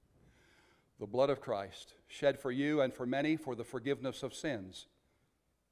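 A middle-aged man speaks calmly through a microphone in an echoing room.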